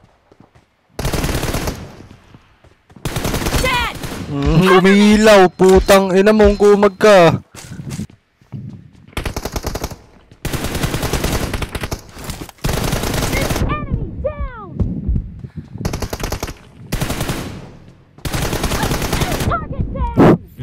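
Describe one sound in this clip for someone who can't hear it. Rapid bursts of automatic gunfire ring out again and again.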